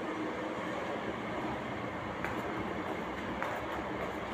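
Footsteps tap on stone stairs.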